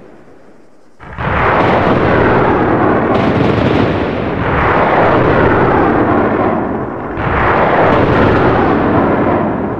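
A missile roars through the sky.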